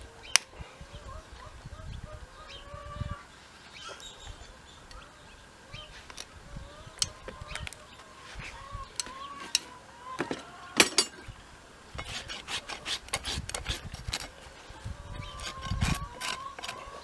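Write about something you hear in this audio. Metal tools clink and tap against a horseshoe.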